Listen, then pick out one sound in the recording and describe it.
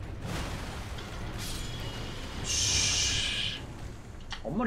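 Frost magic bursts with a crackling hiss.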